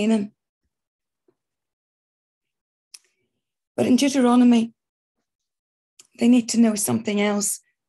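A middle-aged woman speaks calmly and close to the microphone, in short phrases with pauses, over an online call.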